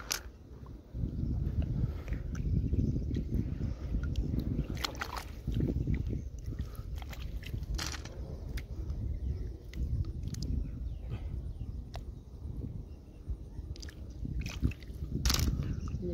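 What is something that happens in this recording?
A hand splashes and sloshes in shallow water.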